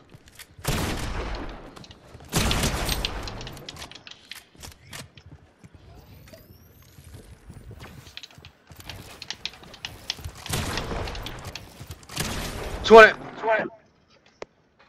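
Wooden building pieces crash and snap into place in quick bursts.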